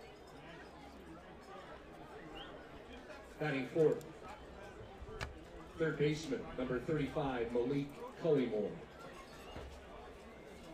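A crowd murmurs softly in an open ballpark.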